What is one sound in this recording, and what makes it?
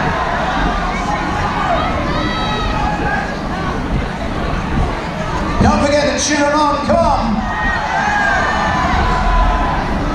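A crowd of spectators shouts and cheers around a boxing ring.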